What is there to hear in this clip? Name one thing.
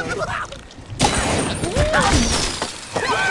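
Wooden and stone blocks crash and tumble down.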